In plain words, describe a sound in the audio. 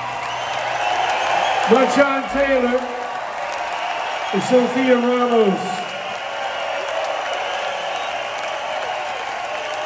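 A live band plays loud music through speakers in a large echoing hall.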